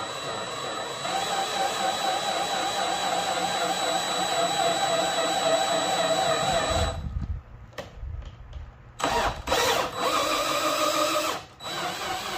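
A cordless drill whirs steadily, turning a threaded rod.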